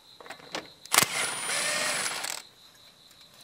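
A power tool whirs briefly.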